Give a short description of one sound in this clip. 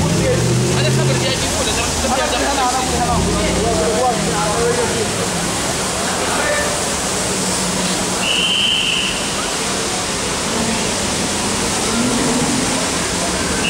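Men talk in a lively crowd nearby.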